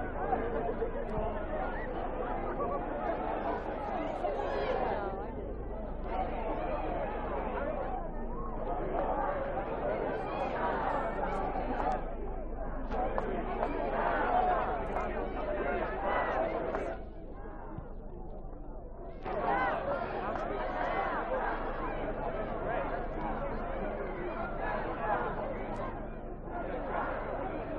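Many voices of men and women talk and call out nearby.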